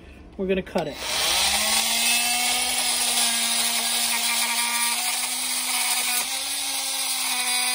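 A cordless drill whirs steadily.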